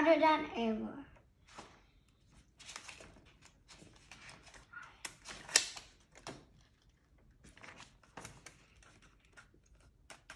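Book pages rustle as a young boy turns them.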